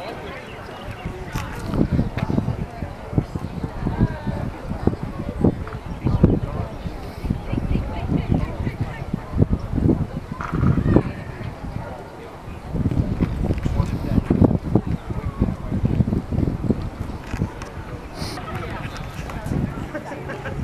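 Children shout and call out in the distance across an open field.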